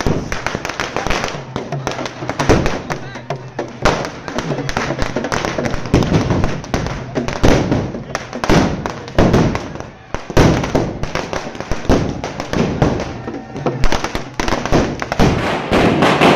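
Firecrackers burst in rapid, loud cracks close by, outdoors.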